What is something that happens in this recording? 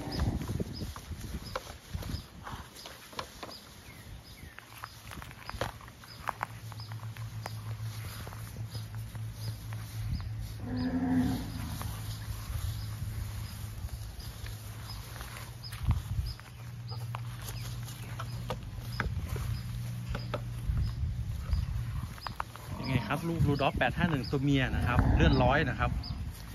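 Calves push through tall grass, rustling the leaves.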